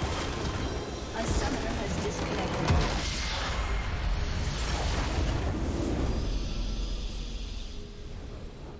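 A large crystal structure shatters with a deep rumbling boom in a video game.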